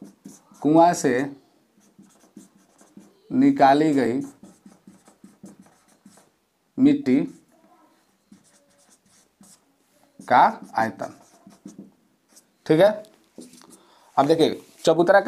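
A man speaks calmly and clearly, close by.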